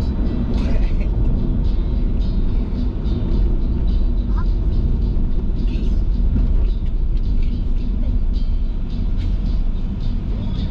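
A car engine hums and tyres rumble steadily on the road from inside the car.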